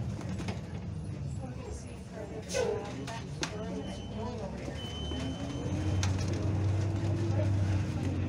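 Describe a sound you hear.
A car engine hums steadily from inside the car and grows louder toward the end.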